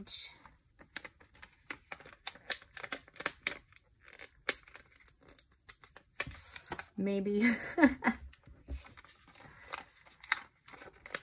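Plastic packaging crinkles and clicks between fingers, up close.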